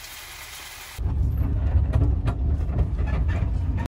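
A van engine rumbles steadily while driving.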